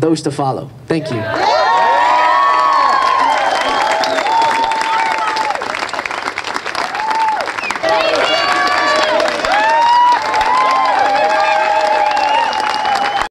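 A crowd claps loudly outdoors.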